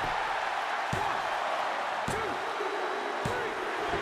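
A referee's hand slaps the mat in a count.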